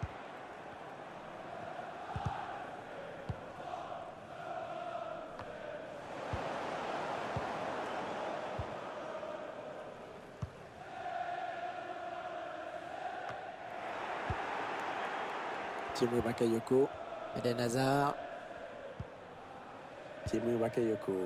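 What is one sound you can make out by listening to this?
A large stadium crowd roars and chants steadily.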